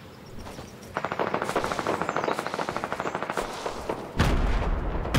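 Quick footsteps patter across the ground.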